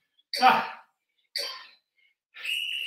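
A man breathes out sharply with effort.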